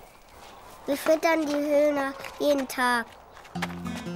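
A young child speaks close by.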